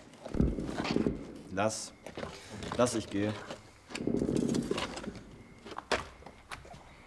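A young man grunts and groans.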